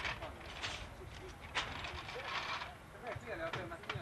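A man talks calmly with others nearby outdoors.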